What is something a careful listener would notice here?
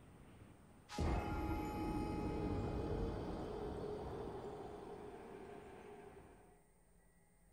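A deep, loud boom hits suddenly and slowly fades away.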